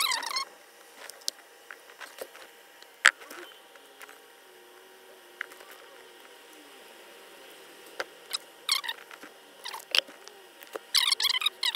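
Small clicks and taps sound from handling a wire connector.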